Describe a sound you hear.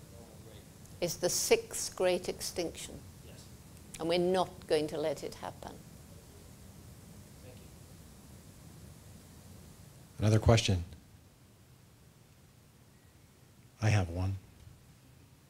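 An elderly woman speaks calmly into a microphone in a large room.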